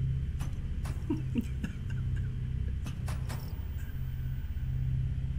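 A man laughs into a close microphone.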